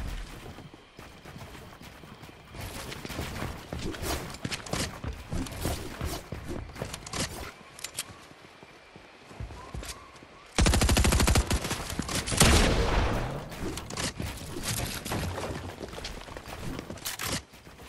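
Video game building pieces snap into place in rapid clicks.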